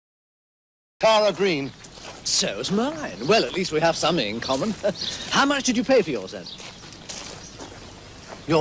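A man talks calmly outdoors.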